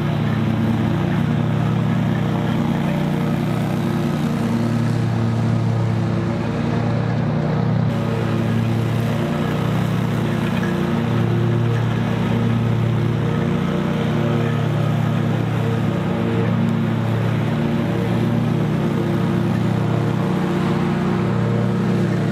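A riding lawn mower engine drones steadily.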